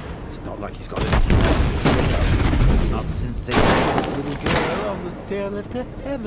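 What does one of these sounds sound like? A loud explosion booms and rubble crashes down.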